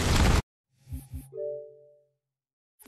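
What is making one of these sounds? A short menu chime sounds in a video game.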